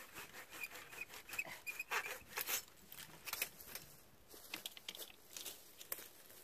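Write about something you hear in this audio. Pruning shears snip through thin dry branches.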